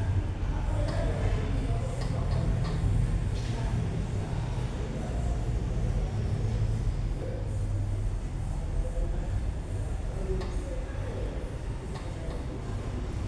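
Hands pat on a man's shoulders.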